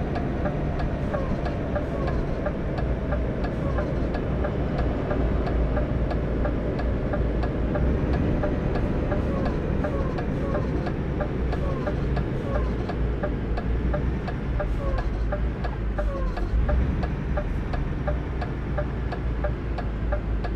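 A turn signal ticks evenly.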